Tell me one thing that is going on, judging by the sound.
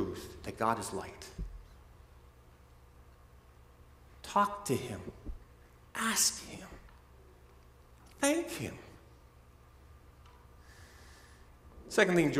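A man speaks calmly through a microphone in short phrases, with pauses between them.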